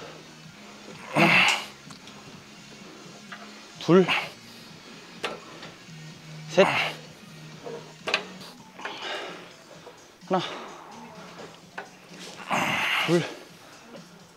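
A man grunts and breathes hard with effort.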